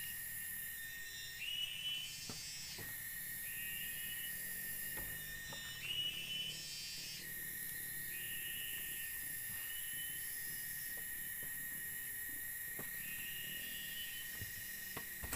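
A machete chops into bamboo with sharp knocks.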